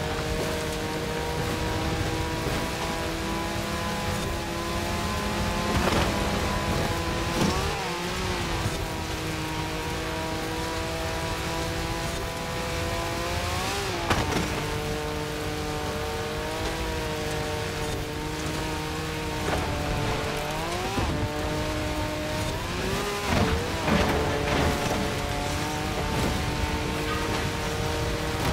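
A buggy engine roars steadily at high revs, rising and dropping sharply as it shifts gears.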